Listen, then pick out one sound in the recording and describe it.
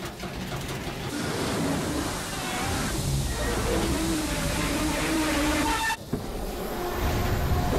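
Steam hisses out in loud bursts.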